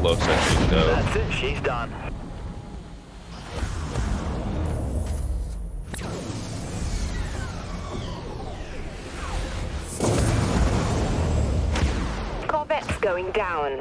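Heavy gunfire booms and rumbles in rapid bursts.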